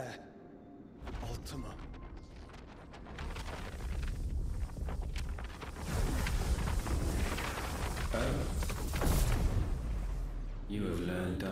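Electricity crackles and roars with a deep rumble.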